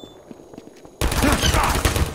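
A gun fires a rapid, sustained burst.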